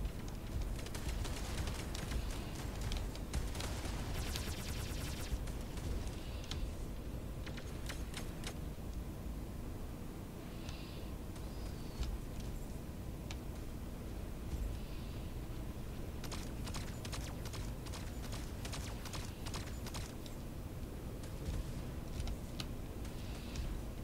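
A man talks into a headset microphone, close and casual.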